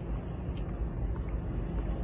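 A dog licks a puppy with soft wet smacking sounds.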